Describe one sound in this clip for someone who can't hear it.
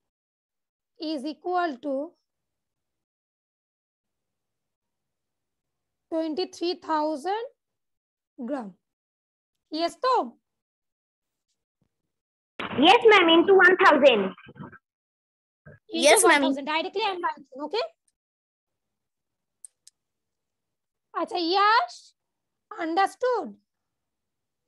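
A woman speaks calmly in short phrases over an online call.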